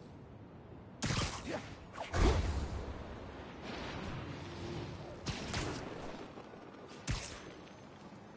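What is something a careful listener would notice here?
Wind rushes past in sudden whooshing bursts.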